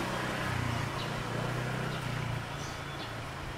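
A motor scooter rides along the street in the distance.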